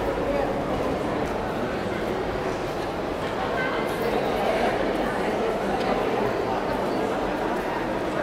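A crowd murmurs and chatters in an echoing arcade.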